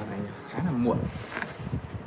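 A hand taps on the top of a wooden speaker cabinet.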